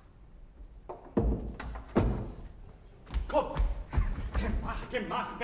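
Footsteps thud on a stage floor.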